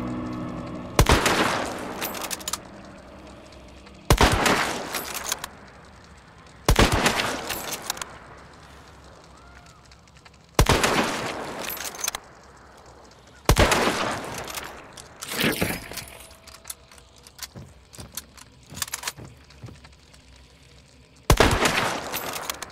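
A rifle fires loud single shots that boom and echo away.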